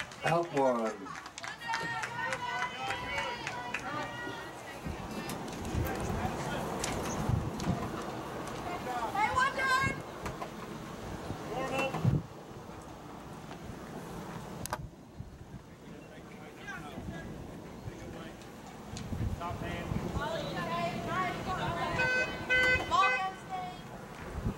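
Teenage girls chant and cheer outdoors.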